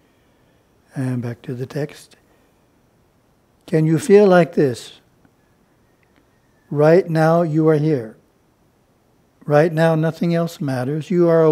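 An elderly man reads aloud calmly, close to a microphone, in short phrases with pauses.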